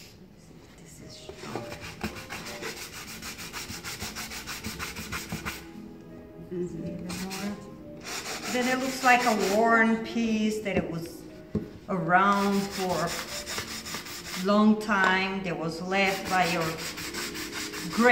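A sanding block rubs back and forth over wood with a rhythmic scraping.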